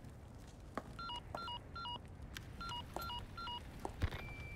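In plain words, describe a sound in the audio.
A radio beeps several times.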